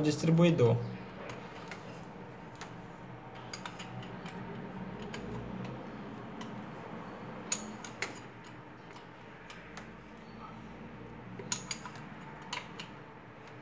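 A wrench clinks against metal parts of an engine.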